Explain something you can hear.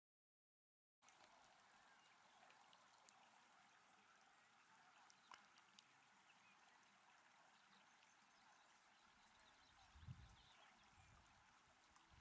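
A stream trickles and babbles softly outdoors.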